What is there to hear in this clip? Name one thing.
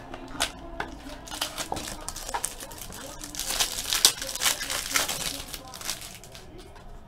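Foil wrapping crinkles and tears as a card pack is opened.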